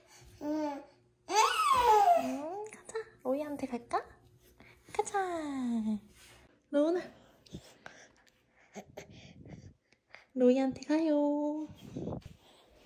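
A baby babbles and coos up close.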